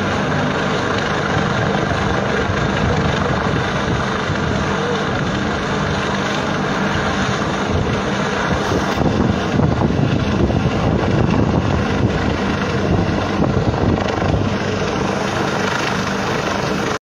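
A helicopter's rotor thumps and drones overhead.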